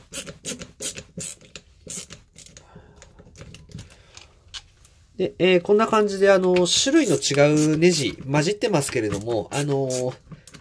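A screwdriver clicks as it turns small screws.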